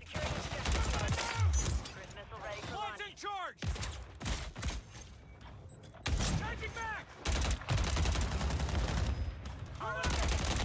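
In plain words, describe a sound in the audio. An automatic rifle fires in rapid bursts.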